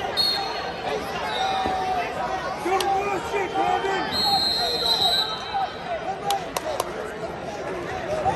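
Spectators shout encouragement loudly from the stands.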